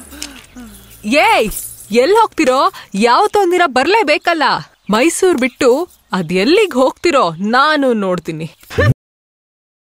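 A young woman speaks forcefully, close by.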